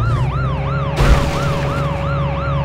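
A car lands with a heavy thud after a jump.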